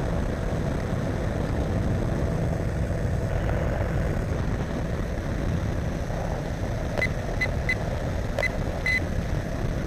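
Wind rushes loudly past in open air.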